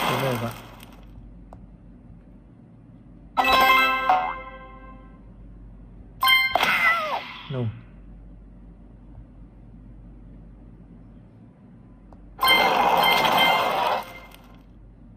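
A video game plays short chiming jingles in bursts.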